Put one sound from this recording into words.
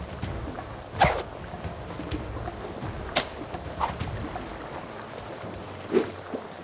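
Short cartoon sound effects whoosh and pop now and then.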